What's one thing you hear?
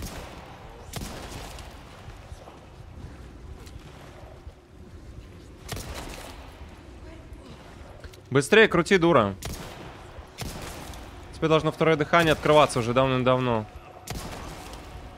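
Pistol shots crack sharply.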